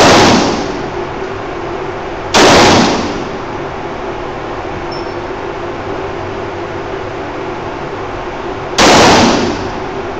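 A handgun fires loud single shots that boom and echo.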